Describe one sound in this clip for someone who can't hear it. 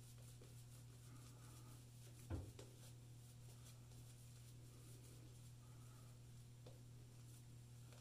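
A shaving brush swishes and squelches through lather on a face.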